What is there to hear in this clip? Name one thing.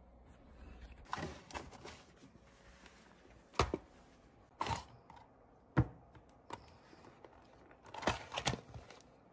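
A cardboard box rustles and taps as hands open it.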